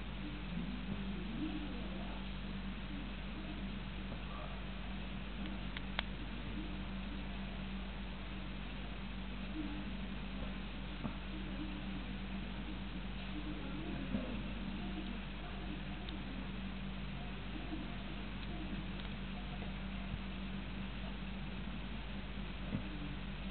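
A gecko's shedding skin rustles softly as it is pulled off.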